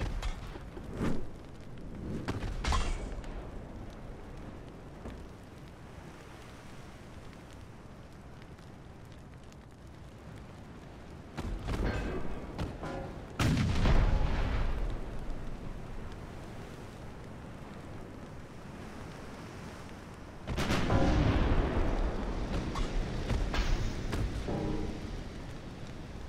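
Shells explode and crash in the distance.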